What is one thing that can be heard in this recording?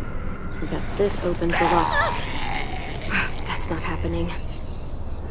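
A young girl speaks in a tense, worried voice.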